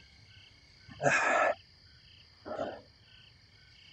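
A man speaks briefly and calmly into a nearby microphone.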